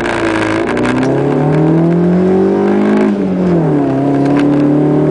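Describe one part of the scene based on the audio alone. Tyres crunch and skid on a gravel road.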